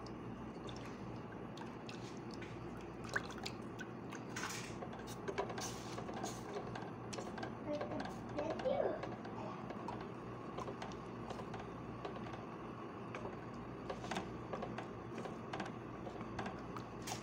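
A wooden spoon scrapes and taps against a metal pot while stirring a thick mixture.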